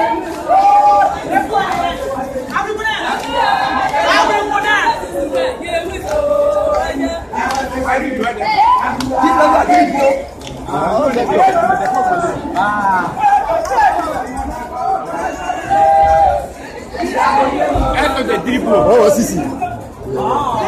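A crowd of women sing together loudly and close by.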